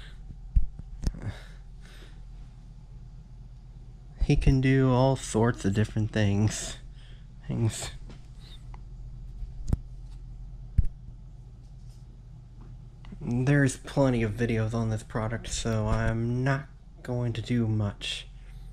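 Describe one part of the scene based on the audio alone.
A hand handles a small plastic device, bumping it against a surface.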